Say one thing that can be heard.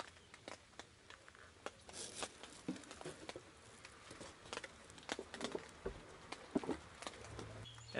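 Plastic sheeting crinkles and rustles.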